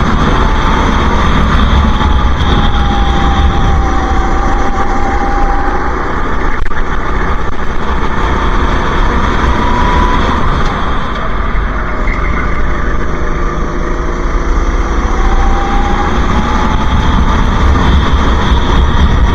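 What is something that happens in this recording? A kart engine buzzes loudly and steadily close by, rising and falling in pitch.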